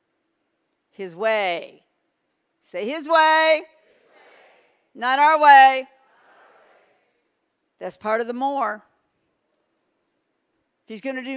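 A middle-aged woman speaks expressively into a microphone in short phrases, heard through loudspeakers in a large hall.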